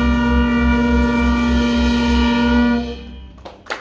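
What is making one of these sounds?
A jazz band holds a loud final chord.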